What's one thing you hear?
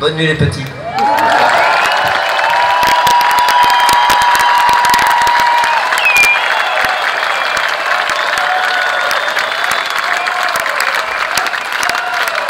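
A large crowd cheers, screams and whistles loudly.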